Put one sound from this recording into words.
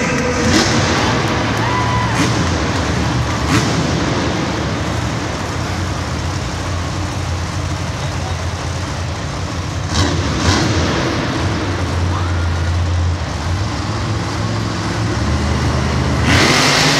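A crowd murmurs in a large echoing stadium.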